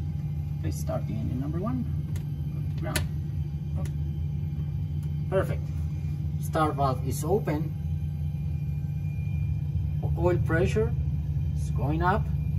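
Switches click as a hand flips cockpit controls.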